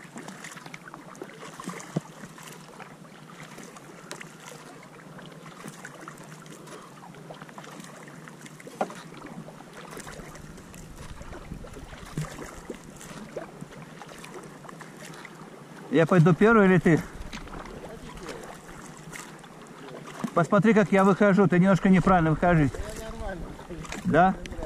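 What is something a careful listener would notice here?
A kayak paddle dips and splashes softly in calm water.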